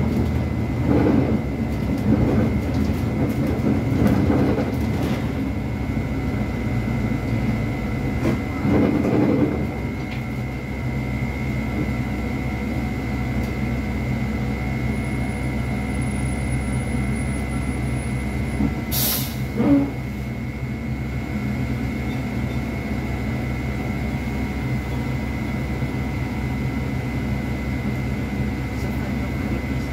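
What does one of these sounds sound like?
A bus engine hums steadily from inside the cab.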